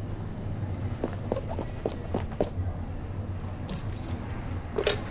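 Footsteps tap and shuffle on a hard floor in a large echoing hall.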